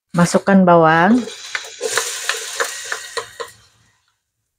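Chopped onion drops into a metal pot.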